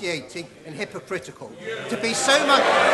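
An older man speaks calmly into a microphone in a large hall.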